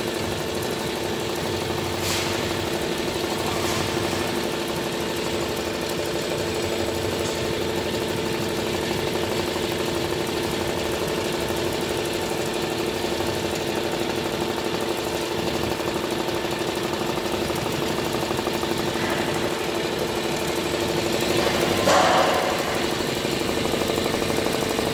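An embroidery machine stitches with a fast, even rattle.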